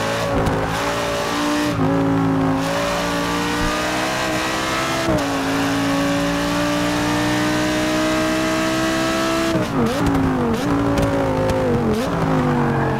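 A racing car engine roars steadily, rising in pitch as it speeds up and dropping sharply at each gear change.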